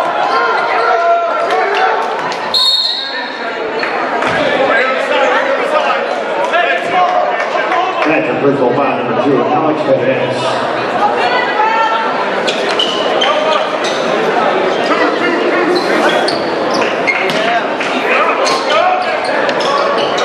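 A crowd chatters and cheers throughout a large echoing gym.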